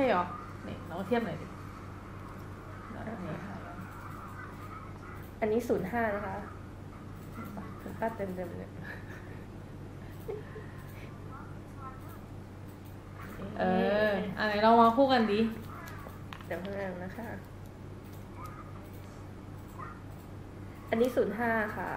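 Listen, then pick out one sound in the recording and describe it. Young women talk with animation and laugh close by.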